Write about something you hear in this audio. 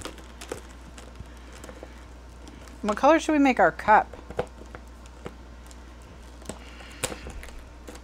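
Plastic marker pens rattle and click as they are handled.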